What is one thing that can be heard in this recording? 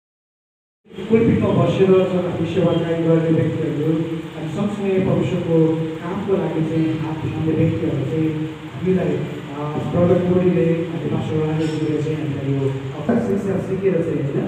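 A group of men and women sing together in a room.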